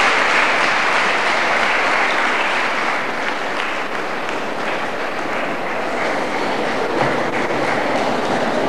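A children's choir sings in a large echoing hall.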